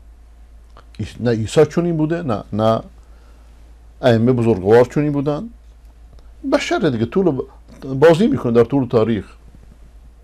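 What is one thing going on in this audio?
A middle-aged man speaks calmly and closely into a microphone, in short bursts with pauses.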